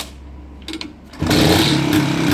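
A man kick-starts a motorcycle.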